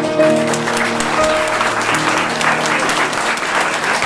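A piano plays a few notes.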